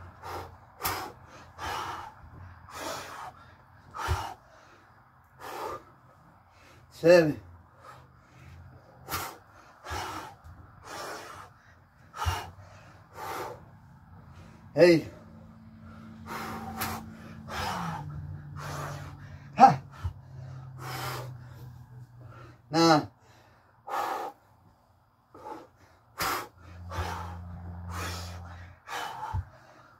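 A man breathes hard, exhaling in sharp bursts.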